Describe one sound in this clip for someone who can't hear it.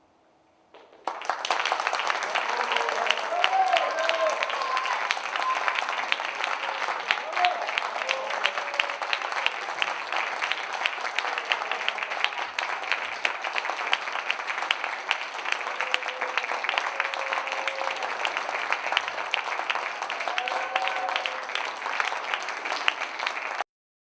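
An audience applauds loudly and steadily in a large hall.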